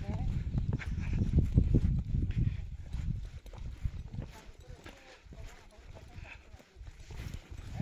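Footsteps crunch on a path.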